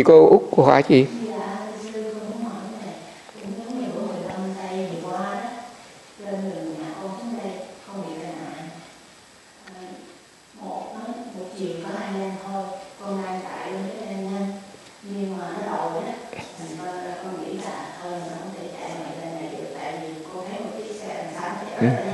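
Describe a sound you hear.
An elderly man speaks calmly and slowly into a nearby microphone.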